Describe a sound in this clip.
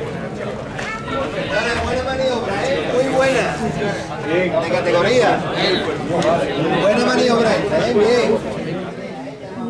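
Men call out loudly to one another.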